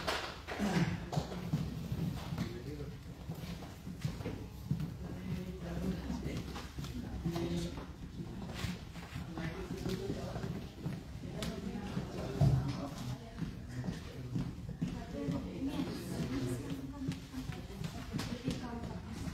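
Several men and women talk quietly in a large, echoing hall.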